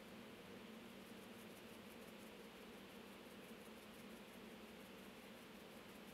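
A spice shaker rattles softly as seasoning is shaken out.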